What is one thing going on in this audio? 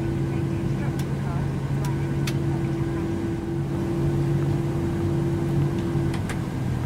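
A switch lever clicks several times.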